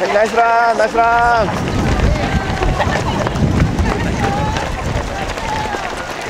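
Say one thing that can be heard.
Many runners' feet patter on the road.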